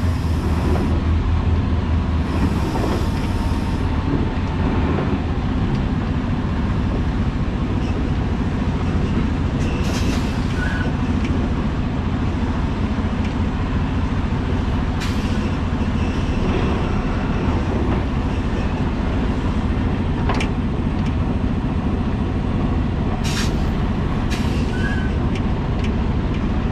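Road rumbles under slowly rolling tyres.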